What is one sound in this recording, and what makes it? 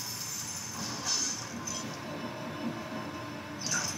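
A magic spell bursts and crackles.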